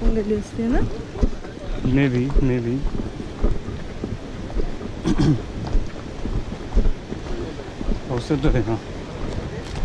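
A young woman talks nearby, outdoors.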